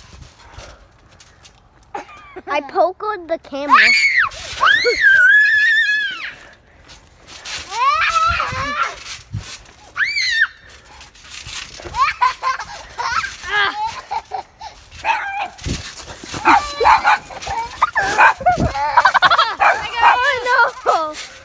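Feet thump on a bouncing trampoline mat.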